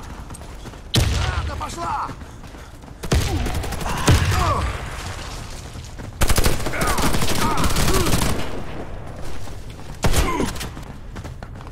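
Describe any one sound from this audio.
Automatic gunfire rattles in short, loud bursts.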